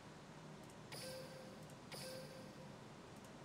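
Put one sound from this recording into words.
A soft chime rings briefly.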